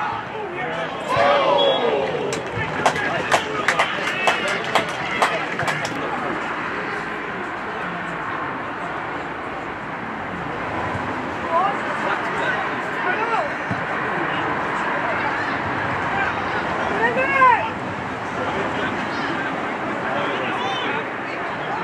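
Spectators murmur and call out in the open air.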